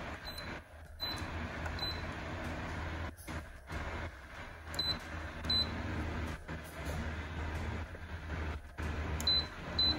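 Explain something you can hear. A fan whirs steadily.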